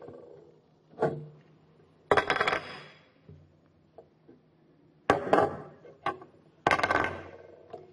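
Stones clatter and knock on a wooden surface.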